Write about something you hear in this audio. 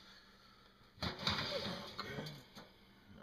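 A metal oven rack slides out with a scraping rattle.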